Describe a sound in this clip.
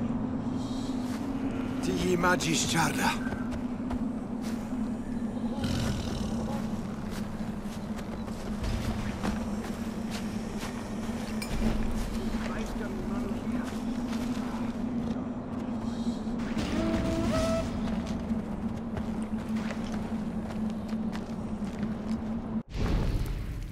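Footsteps rustle through dry grass and over rock.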